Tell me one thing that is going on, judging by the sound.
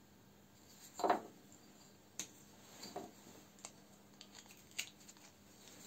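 Small wooden blocks knock together.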